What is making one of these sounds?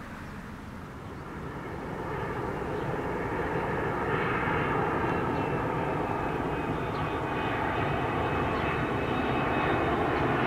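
A jet airliner roars low overhead, its engines growing steadily louder as it approaches.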